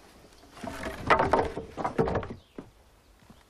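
Wooden boards clatter and scrape as a man climbs out of rubble.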